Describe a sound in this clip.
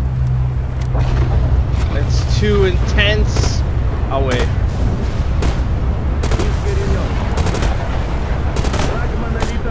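Rifle shots crack repeatedly, some in short bursts.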